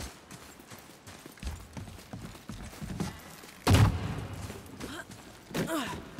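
Heavy footsteps thud on wooden planks.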